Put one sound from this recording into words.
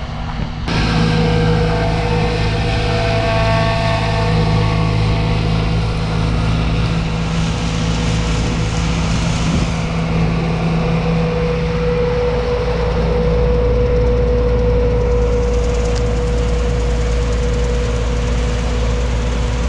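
A combine harvester's engine drones loudly close by.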